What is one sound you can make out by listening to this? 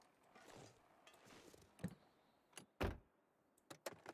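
A car door creaks open.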